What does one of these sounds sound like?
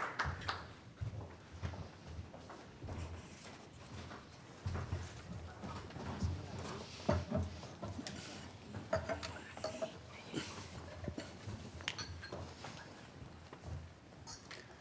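Several adults talk quietly nearby.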